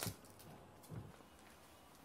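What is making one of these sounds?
Cabbage leaves crinkle and snap as they are peeled by hand.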